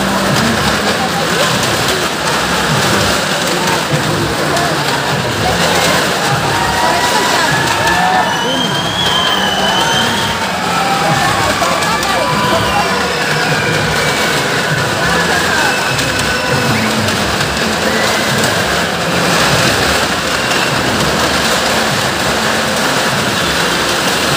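Car engines roar loudly in a large echoing space.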